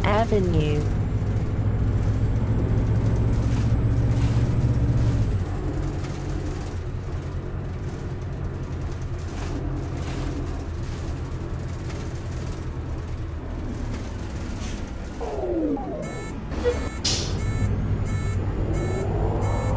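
A bus engine hums and drones steadily.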